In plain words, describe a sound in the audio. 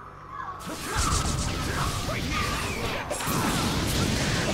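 Blades slash and clash with sharp whooshing hits.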